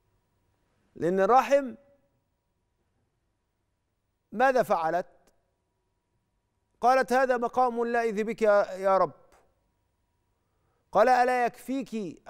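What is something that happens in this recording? A middle-aged man speaks calmly into a close microphone, with pauses between phrases.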